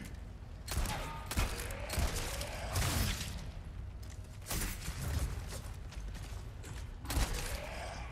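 A monstrous creature snarls and groans.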